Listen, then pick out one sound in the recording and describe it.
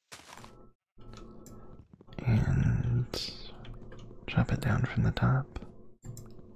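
An axe chops wood with quick, repeated knocks.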